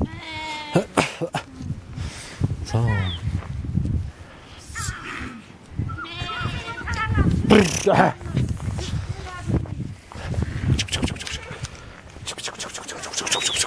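A flock of sheep bleats loudly and often, close by and further off.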